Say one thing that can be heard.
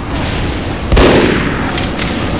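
A fire bursts with a roaring explosion.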